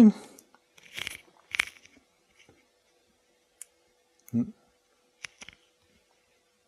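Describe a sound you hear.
Small clicks sound as a man handles a small device.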